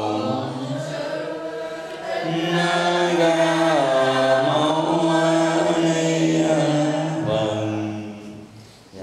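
A man chants in a steady, drawn-out voice through a microphone.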